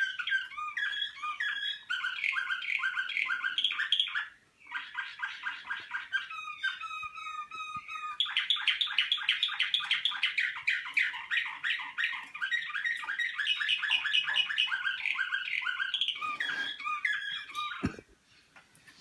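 Canaries sing loud, rapid trilling songs close by.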